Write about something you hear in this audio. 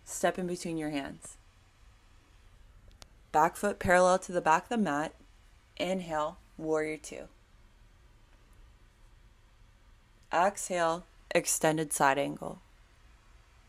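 A woman speaks calmly, pausing between phrases.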